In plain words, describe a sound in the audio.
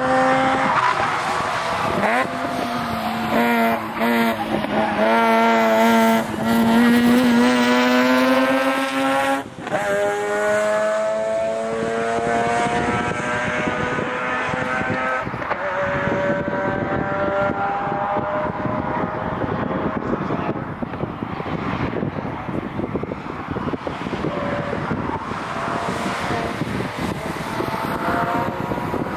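A car engine roars and revs, rising and falling in pitch.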